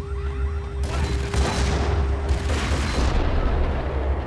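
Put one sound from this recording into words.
Gunshots ring out with a loud echoing blast.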